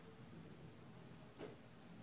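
Milk pours and splashes into a metal jar.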